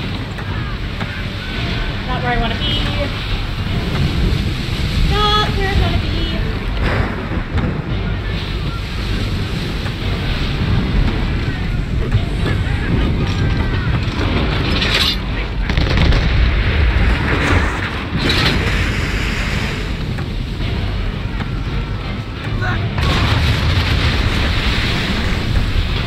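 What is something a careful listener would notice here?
Waves crash and roar against a ship's hull.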